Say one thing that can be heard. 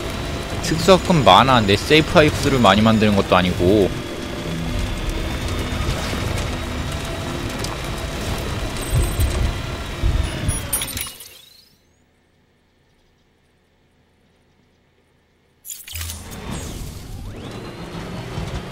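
Tyres crunch over gravel and stones.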